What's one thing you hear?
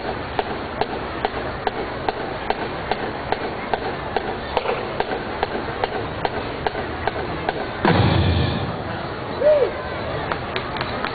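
A marching band's drums beat a steady rhythm outdoors.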